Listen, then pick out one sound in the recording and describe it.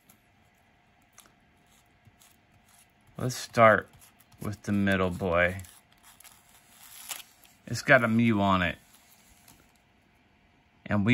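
Foil wrappers rustle and crinkle as card packs are handled.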